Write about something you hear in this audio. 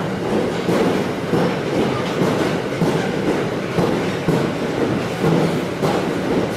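Wheels knock rhythmically over rail joints.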